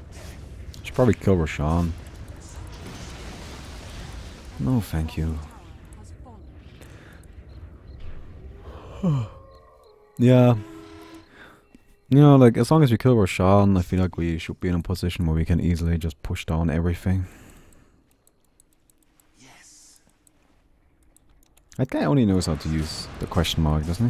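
A young man talks with animation into a microphone, close by.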